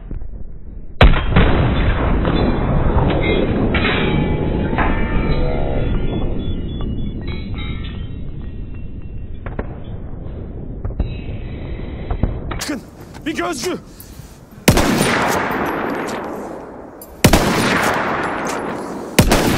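A sniper rifle fires with a sharp crack.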